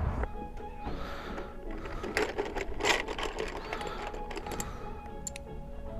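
Wrapped candies rustle and clatter as a hand rummages through a bucket.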